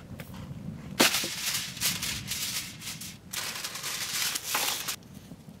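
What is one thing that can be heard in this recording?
Aluminium foil crinkles.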